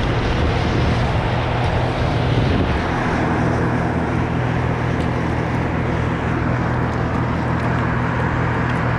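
Wind blows steadily across the microphone outdoors.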